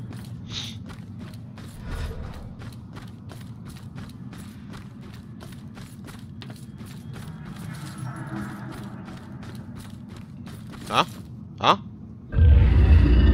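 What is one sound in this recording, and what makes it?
Footsteps tread steadily on wooden boards.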